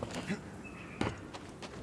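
Boots land with a heavy thump on wooden planks.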